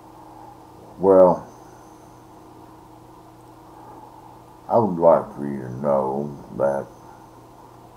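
An elderly man speaks close to a microphone in short bursts.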